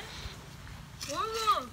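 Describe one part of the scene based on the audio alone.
A young boy speaks up close with excitement.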